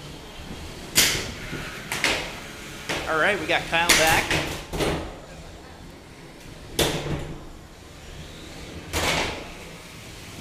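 Combat robots crash into each other and the arena walls with loud metallic bangs.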